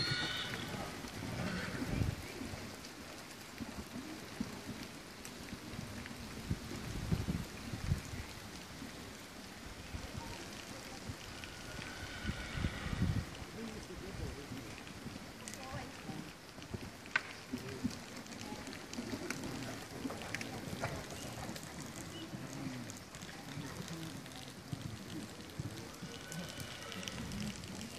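A horse's hooves thud on a soft arena at a canter.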